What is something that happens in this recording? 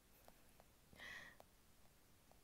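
A young woman gives a short murmur.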